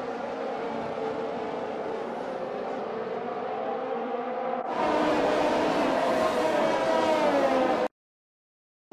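Racing car engines whine at high revs as cars speed past.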